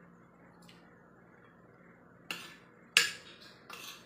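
A young woman chews food close by.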